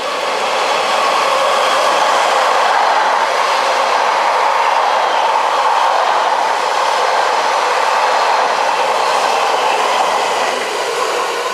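A train rumbles past close by, its wheels clattering on the rails.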